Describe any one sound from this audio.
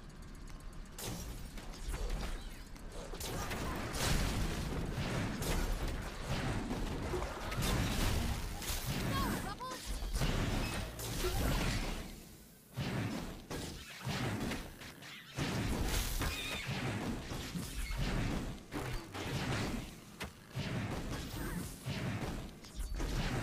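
Game sound effects of blasts and magic zaps ring out during a battle.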